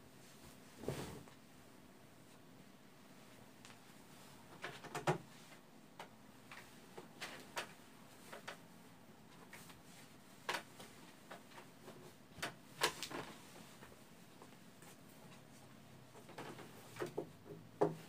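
A sheet rustles and flaps as it is spread over a bed.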